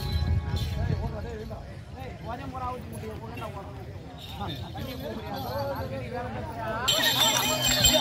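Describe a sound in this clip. A man sings loudly through a loudspeaker.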